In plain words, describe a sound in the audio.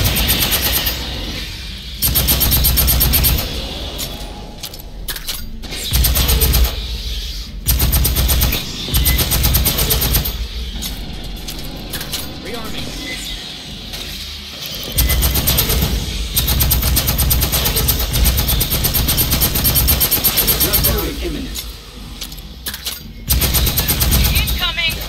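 An automatic rifle fires in loud, rapid bursts.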